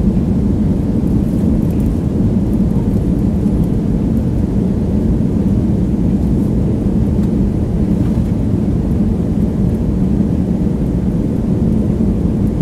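An airplane engine roars with a steady low drone.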